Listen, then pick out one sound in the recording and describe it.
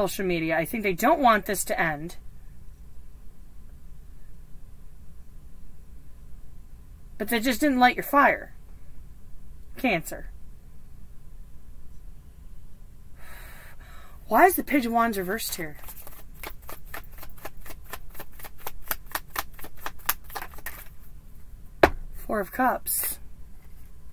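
A woman speaks calmly and closely, in short bursts.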